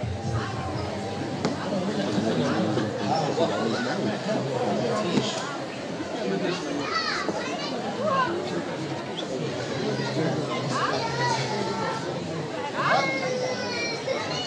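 A seated crowd of men and women chatters all around in a large echoing hall.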